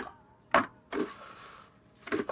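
Liquid pours into a glass jar.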